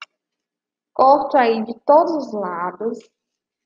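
A young woman speaks clearly over an online call.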